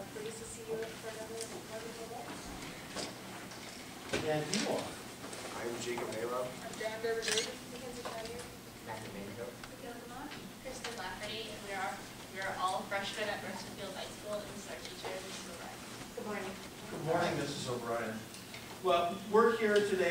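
A young man speaks calmly into a microphone in a room with a slight echo.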